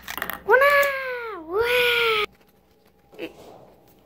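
A small toy car clicks down onto a wooden table.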